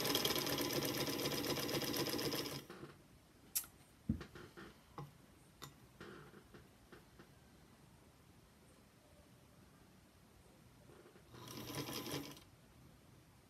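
A sewing machine runs fast in short bursts.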